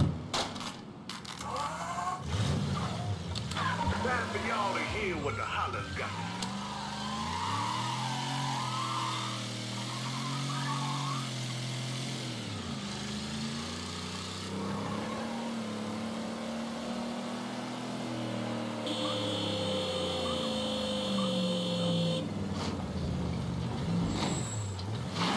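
A car engine starts and revs loudly, rising and falling as it accelerates.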